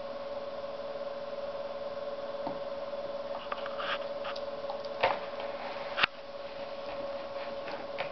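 A dog chews on a rubber toy.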